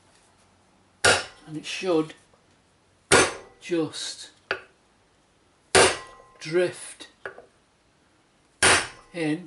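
A mallet knocks against a metal wheel hub.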